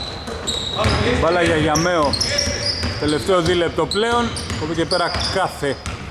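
A basketball thumps as it is dribbled on the court.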